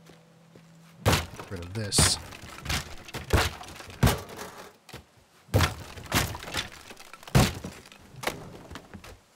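A sledgehammer smashes through wooden walls with heavy crunching blows.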